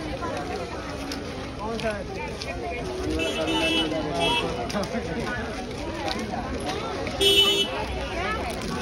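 A crowd of men and women chatter busily all around, outdoors.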